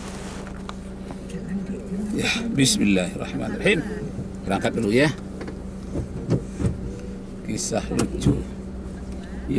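A car engine hums steadily at idle.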